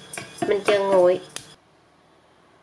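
A spoon stirs and scrapes dry seeds in a metal pot.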